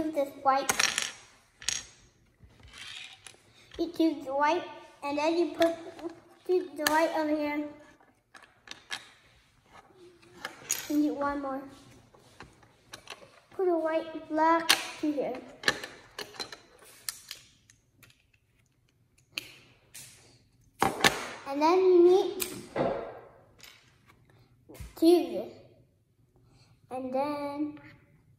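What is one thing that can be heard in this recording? Plastic toy bricks click and clatter together.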